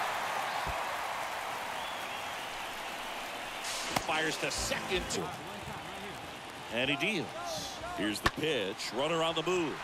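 A stadium crowd cheers and murmurs.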